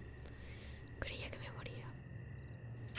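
A young man speaks briefly and quietly into a nearby microphone.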